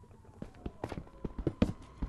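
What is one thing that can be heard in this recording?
A pickaxe chips at stone.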